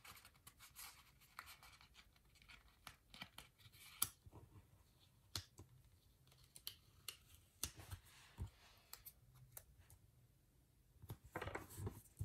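Stickers peel off backing paper.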